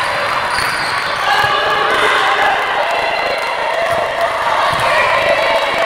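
A ball bounces on a hard floor in a large echoing hall.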